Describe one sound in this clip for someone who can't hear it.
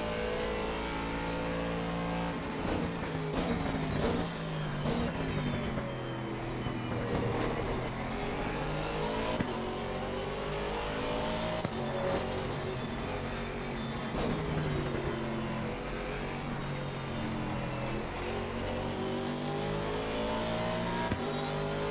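Other race car engines whine close by.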